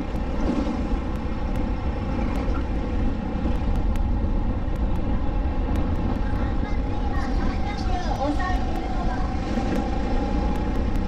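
Wind buffets a microphone on an open kart at speed.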